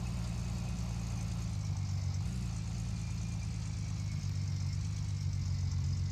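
A pickup truck engine rumbles steadily.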